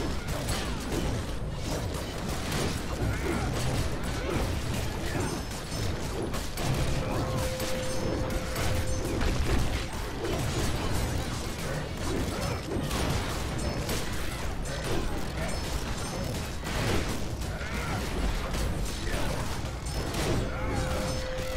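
Weapons clash repeatedly in a chaotic battle.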